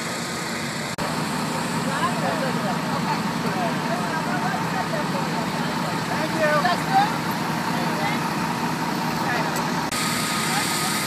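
Several men talk among themselves nearby, outdoors.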